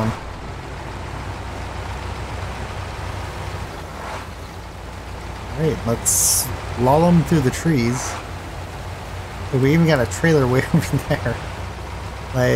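A heavy truck engine rumbles low and steadily.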